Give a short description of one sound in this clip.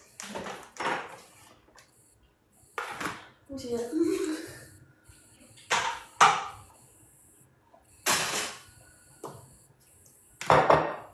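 Dishes and pans clatter and clink.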